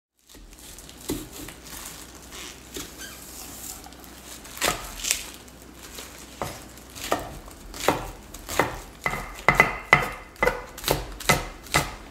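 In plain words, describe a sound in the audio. A knife chops through a spring onion on a wooden board with sharp knocks.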